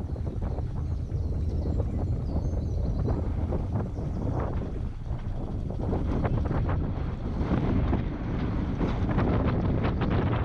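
Wind buffets and rumbles outdoors.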